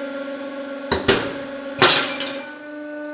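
A steel bearing bursts under a press with loud sharp cracks.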